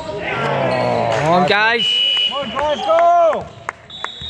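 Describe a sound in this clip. A basketball bounces on a wooden floor as it is dribbled.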